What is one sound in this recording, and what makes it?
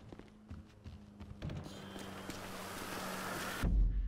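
A heavy door swings open.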